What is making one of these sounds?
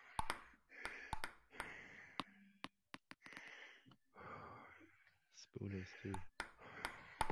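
A ping pong ball clicks sharply off paddles and a table in a quick rally.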